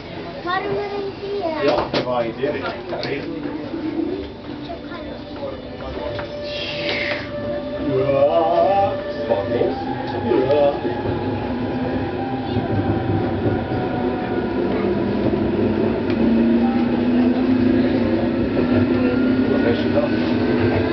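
A train rumbles along its rails.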